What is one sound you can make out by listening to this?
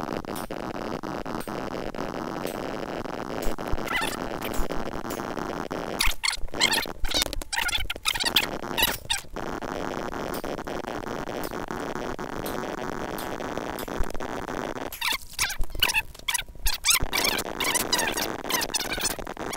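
Blocks of sand crunch quickly one after another as they are dug.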